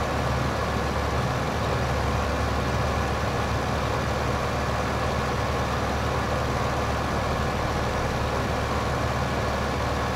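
A seed drill rattles over the ground.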